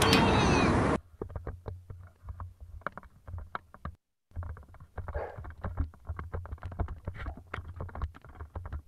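An airsoft gun fires in rapid bursts.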